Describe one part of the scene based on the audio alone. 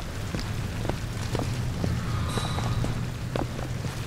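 Water gushes and splashes loudly nearby.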